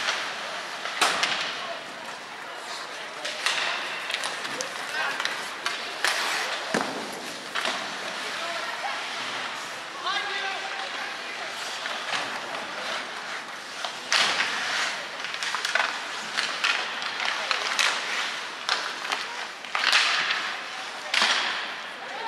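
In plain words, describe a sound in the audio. Hockey sticks slap and clack against a puck.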